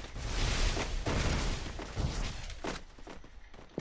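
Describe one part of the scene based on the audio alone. Loud gunfire bursts out in a video game.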